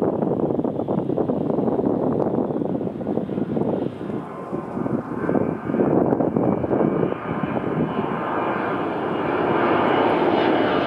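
A jet airliner roars overhead as it approaches, growing louder.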